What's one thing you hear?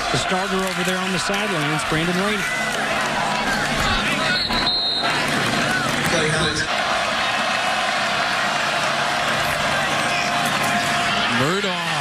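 Football players crash into each other in a pile-up.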